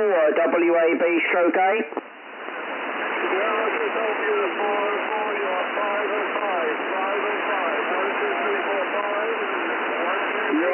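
Radio static hisses steadily through a receiver.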